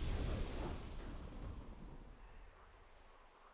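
A triumphant game fanfare booms and fades away.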